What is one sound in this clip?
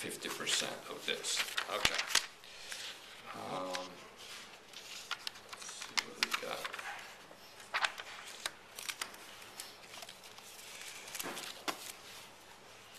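Sheets of paper rustle and crinkle as they are handled.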